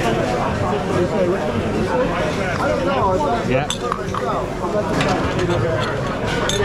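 People chatter all around in a busy room.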